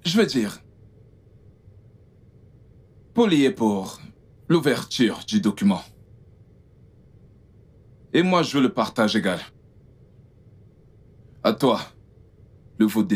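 A man speaks calmly, close by, in short bursts.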